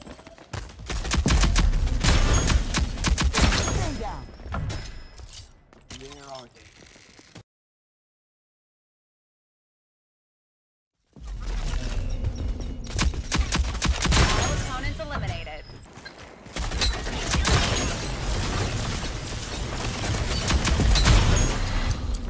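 Rapid gunfire cracks in quick bursts.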